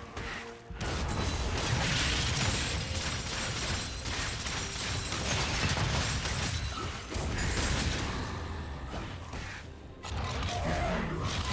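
Fighting sound effects from a video game clash and burst.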